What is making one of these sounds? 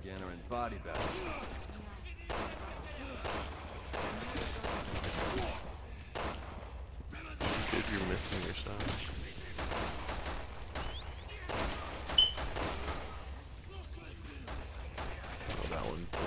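A pistol fires sharp shots, one after another.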